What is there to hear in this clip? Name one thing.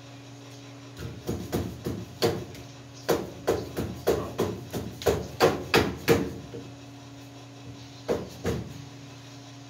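A hammer strikes metal in quick repeated blows.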